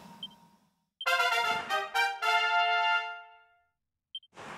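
A short cheerful fanfare plays.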